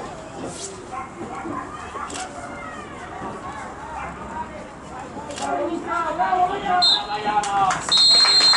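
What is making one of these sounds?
A crowd of people chatters in the distance outdoors.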